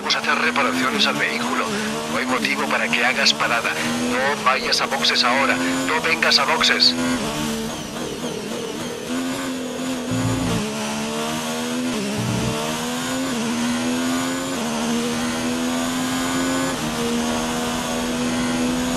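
A racing car engine roars and whines, rising in pitch and dropping sharply with each gear change.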